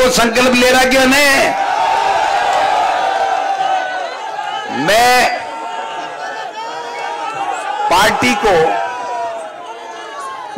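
A large outdoor crowd cheers and chants.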